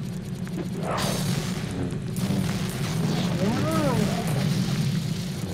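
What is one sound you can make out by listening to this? Explosions burst with clattering bricks.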